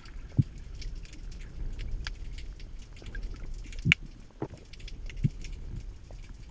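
Water rumbles and murmurs softly underwater.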